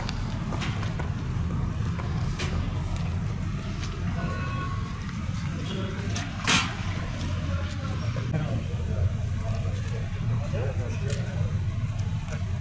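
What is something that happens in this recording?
Footsteps tap on pavement as several men walk.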